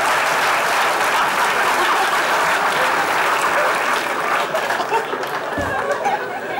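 An audience claps hands.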